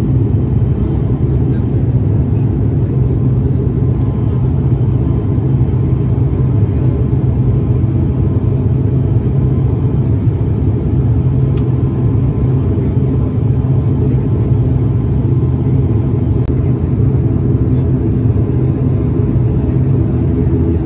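A plane's engines drone steadily, heard from inside the cabin.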